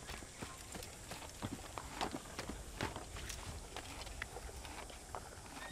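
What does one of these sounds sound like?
Hands and feet scrape and knock on stone during a climb.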